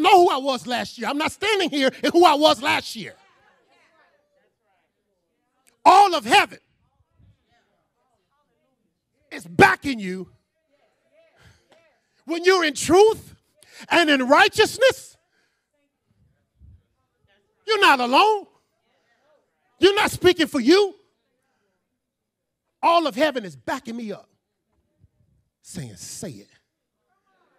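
A man preaches with animation into a microphone, in bursts with pauses between.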